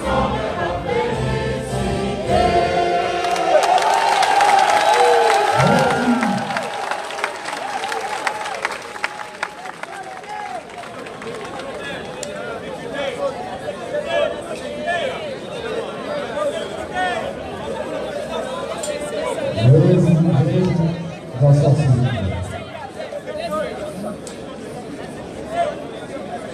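A large outdoor crowd chants and sings loudly together.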